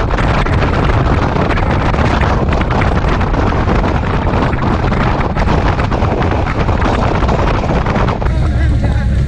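Wind buffets loudly against a moving motorcycle rider.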